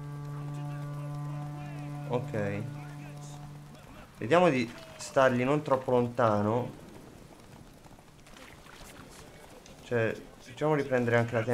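A horse gallops along a dirt track.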